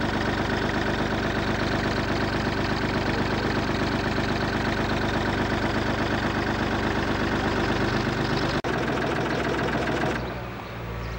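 A boat engine chugs steadily close by.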